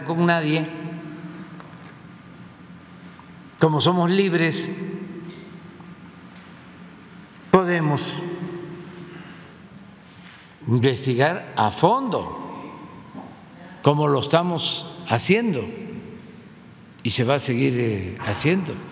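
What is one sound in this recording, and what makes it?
An elderly man speaks slowly into a microphone in short bursts, with long pauses.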